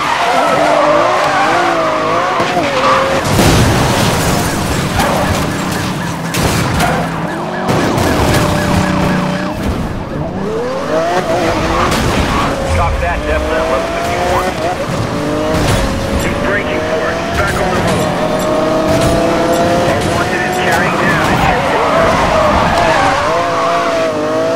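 Tyres screech.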